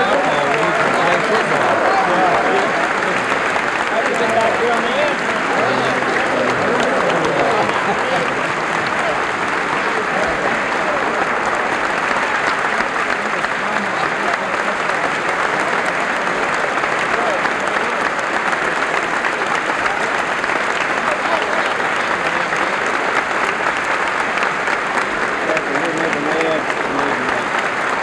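A large crowd applauds steadily in a big echoing hall.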